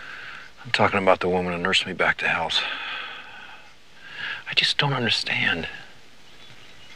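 A middle-aged man speaks in a low, tense voice.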